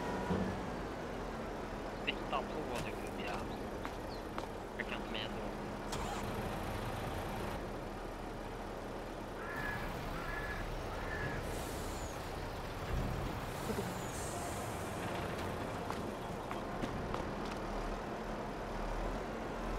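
A wheel loader's diesel engine rumbles steadily.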